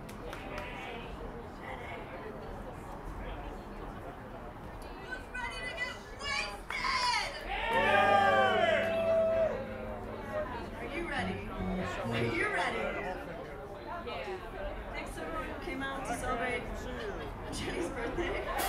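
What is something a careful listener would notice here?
A crowd of adults chatters in the background outdoors.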